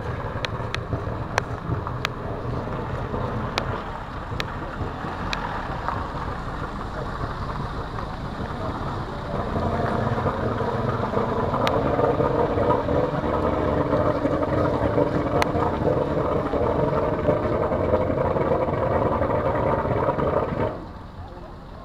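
A powerboat engine roars loudly and steadily close by.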